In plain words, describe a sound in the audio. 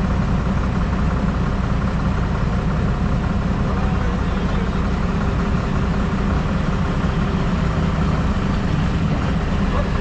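A heavy engine rumbles steadily close by.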